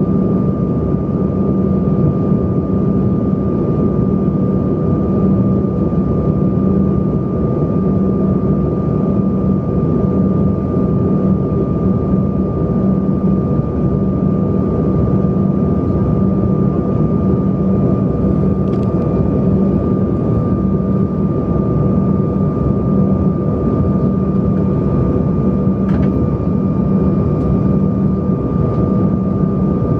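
A jet engine roars steadily inside an airliner cabin in flight.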